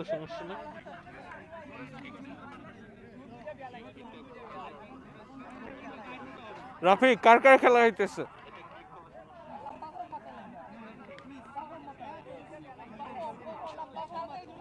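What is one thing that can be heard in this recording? A crowd of people chatter and call out outdoors.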